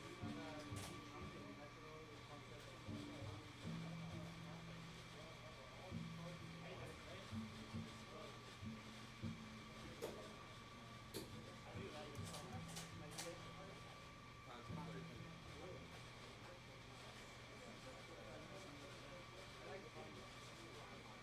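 Drums tap with light cymbal hits.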